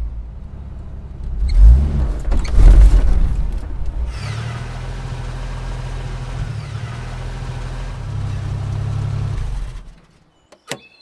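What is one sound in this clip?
An engine rumbles as a vehicle drives slowly.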